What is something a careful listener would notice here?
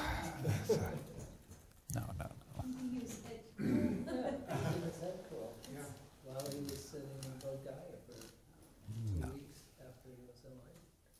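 An elderly man talks warmly and cheerfully, close to a microphone.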